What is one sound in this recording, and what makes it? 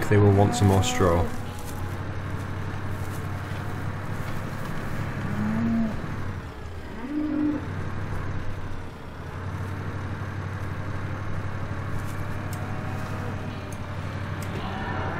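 Rain patters on a cab roof.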